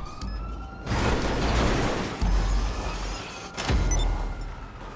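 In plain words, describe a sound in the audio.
A car crashes with a loud thud.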